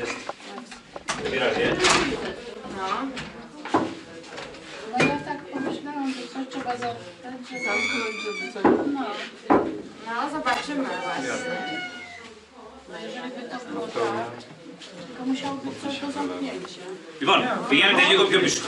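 Several adults chat quietly nearby.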